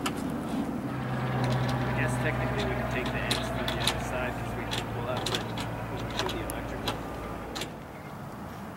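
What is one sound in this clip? An airplane drones overhead.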